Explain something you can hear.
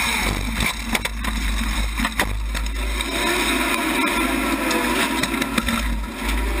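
Racing car engines roar loudly and close by.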